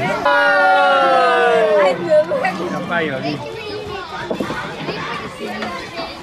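Young children chatter in a small crowd outdoors.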